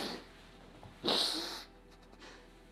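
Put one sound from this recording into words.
A woman sobs.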